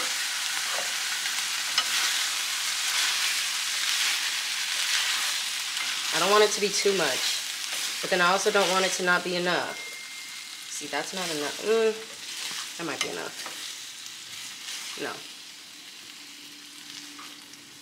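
Food sizzles in a hot pan.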